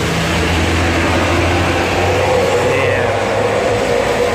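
A bus engine rumbles as the bus drives past.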